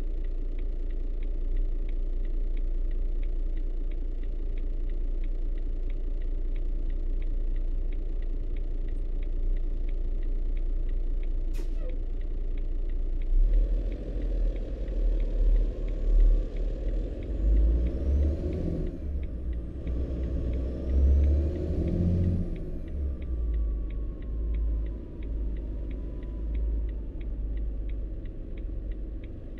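A turn signal ticks in a steady rhythm.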